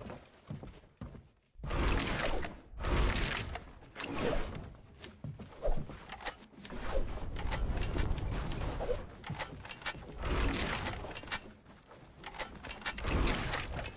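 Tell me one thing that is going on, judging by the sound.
Video game footsteps patter rapidly.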